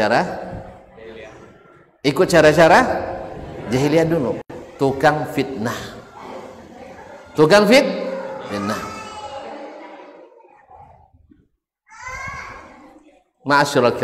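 A middle-aged man preaches with animation into a microphone, his voice echoing in a large hall.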